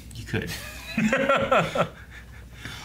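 Men laugh nearby.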